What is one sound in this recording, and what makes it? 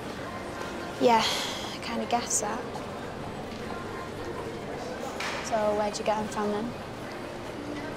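A teenage girl talks quietly with a friend at close range.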